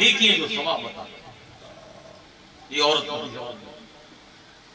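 A man speaks loudly into a microphone in short bursts.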